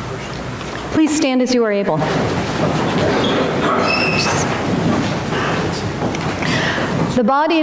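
A woman sings through a microphone, echoing in a large hall.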